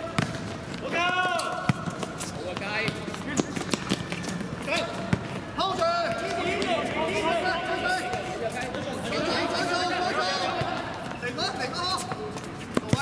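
Shoes squeak on a hard court surface.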